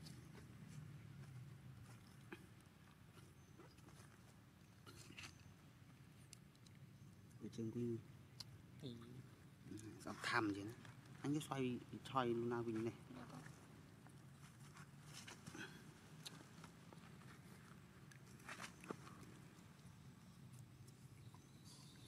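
A monkey chews and bites into soft fruit.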